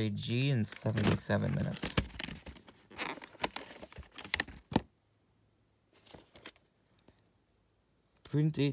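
A plastic tape case clicks and rattles as hands handle it.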